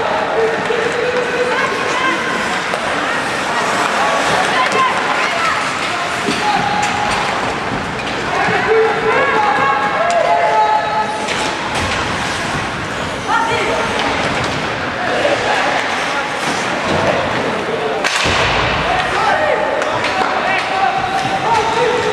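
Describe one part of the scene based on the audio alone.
Skates scrape and carve across the ice.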